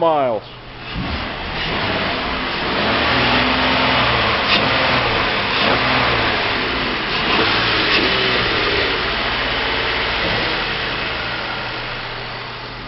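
A car engine runs with a steady, noisy rumble.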